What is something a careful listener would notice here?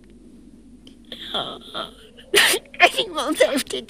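A small bird chirps sharply.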